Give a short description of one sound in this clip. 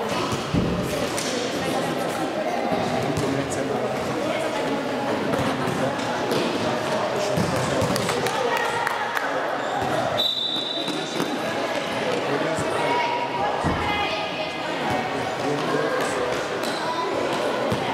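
Young girls shout and call out in a large echoing hall.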